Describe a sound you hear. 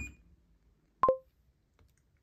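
A bathroom scale beeps once.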